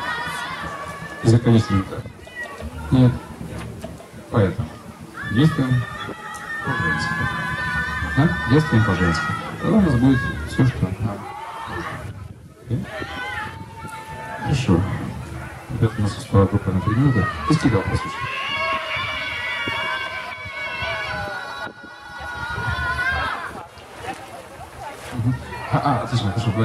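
A man sings loudly into a microphone, amplified through loudspeakers outdoors.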